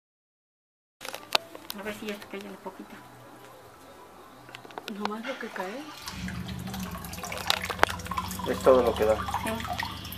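Water splashes from a tap into a tank.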